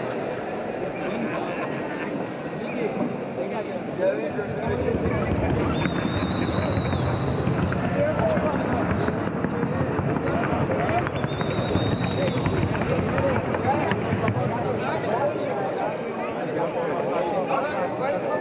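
A large crowd murmurs in an echoing indoor arena.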